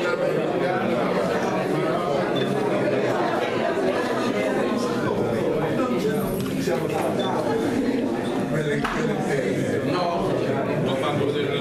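Men talk with each other close by.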